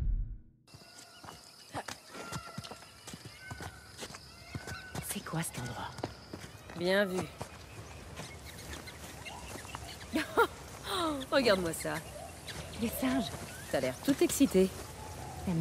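Footsteps patter quickly over stone and grass.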